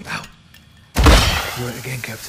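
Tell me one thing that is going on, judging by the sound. A sudden loud bang rings out.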